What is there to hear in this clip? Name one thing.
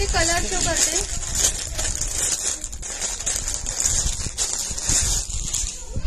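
A plastic wrapper crinkles and rustles.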